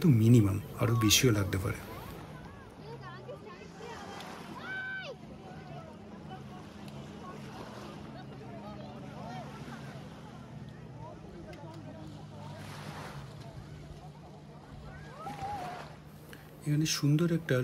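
A crowd of people chatter and call out at a distance outdoors.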